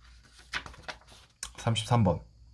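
Paper rustles as sheets are handled.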